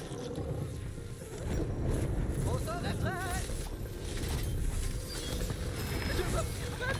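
Guns fire rapidly in a video game.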